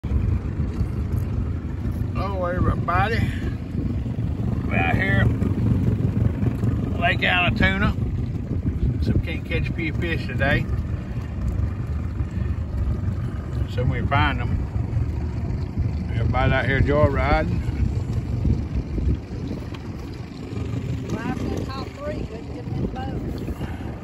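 Wind rumbles across the microphone on open water.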